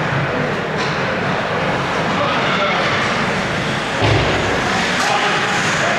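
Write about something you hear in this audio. A puck knocks sharply against a stick.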